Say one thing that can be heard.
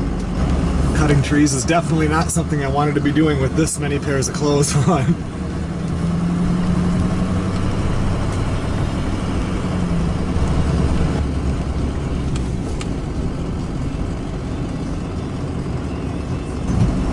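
A car engine hums steadily as the car drives slowly.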